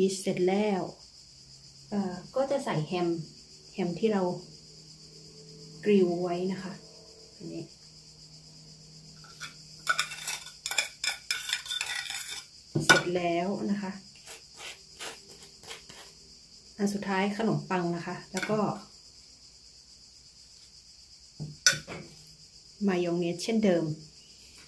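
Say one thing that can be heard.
Slices of food are set down softly on a wooden board.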